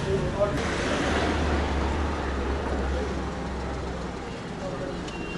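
A car engine hums nearby.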